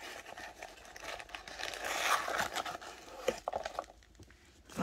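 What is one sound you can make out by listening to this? Foam packing pieces rustle and squeak as a hand lifts them out of a box.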